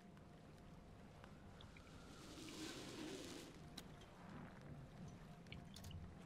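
Waves wash steadily around a ship at sea.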